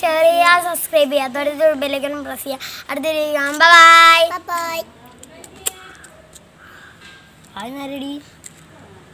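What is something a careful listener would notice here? A young girl speaks close by with animation.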